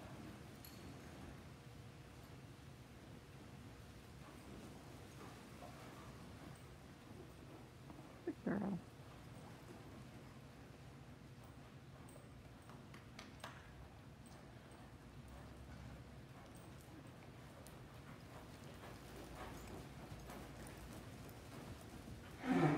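A horse's hooves thud softly on loose dirt.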